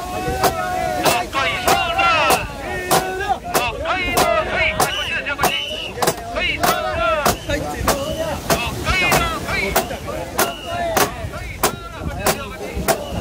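A crowd of men chants loudly in a steady rhythm outdoors.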